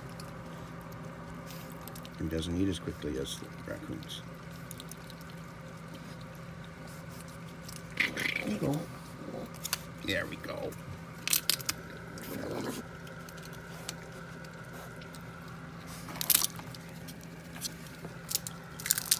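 Dry peanut shells crackle and rustle under small paws.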